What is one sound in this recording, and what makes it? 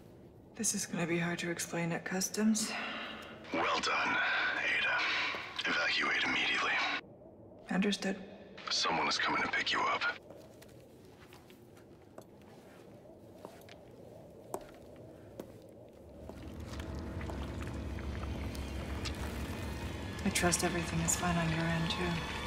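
A young woman speaks calmly and quietly, close by.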